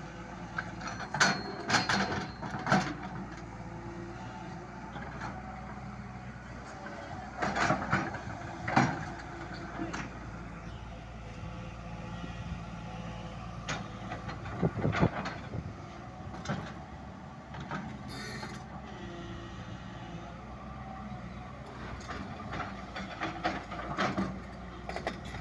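A digger bucket scrapes and thuds into dry earth.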